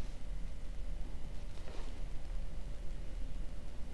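Paper sheets rustle and crinkle close by.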